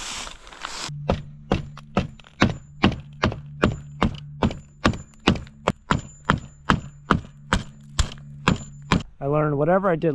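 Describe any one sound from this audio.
A hammer taps repeatedly on staples in wood.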